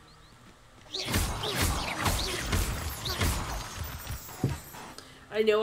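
A magic spell crackles and bursts with a loud whoosh.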